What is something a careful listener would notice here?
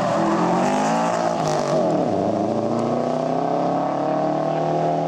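A rally car's engine revs hard close by, its pitch dropping and rising as it shifts gears.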